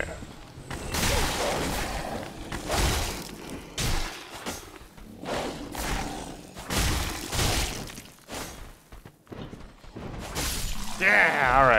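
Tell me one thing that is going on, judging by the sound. Heavy weapon blows strike with loud crashing bursts.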